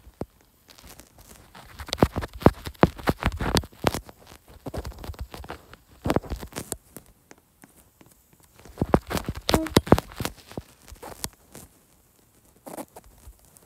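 Keyboard taps click quickly on a phone.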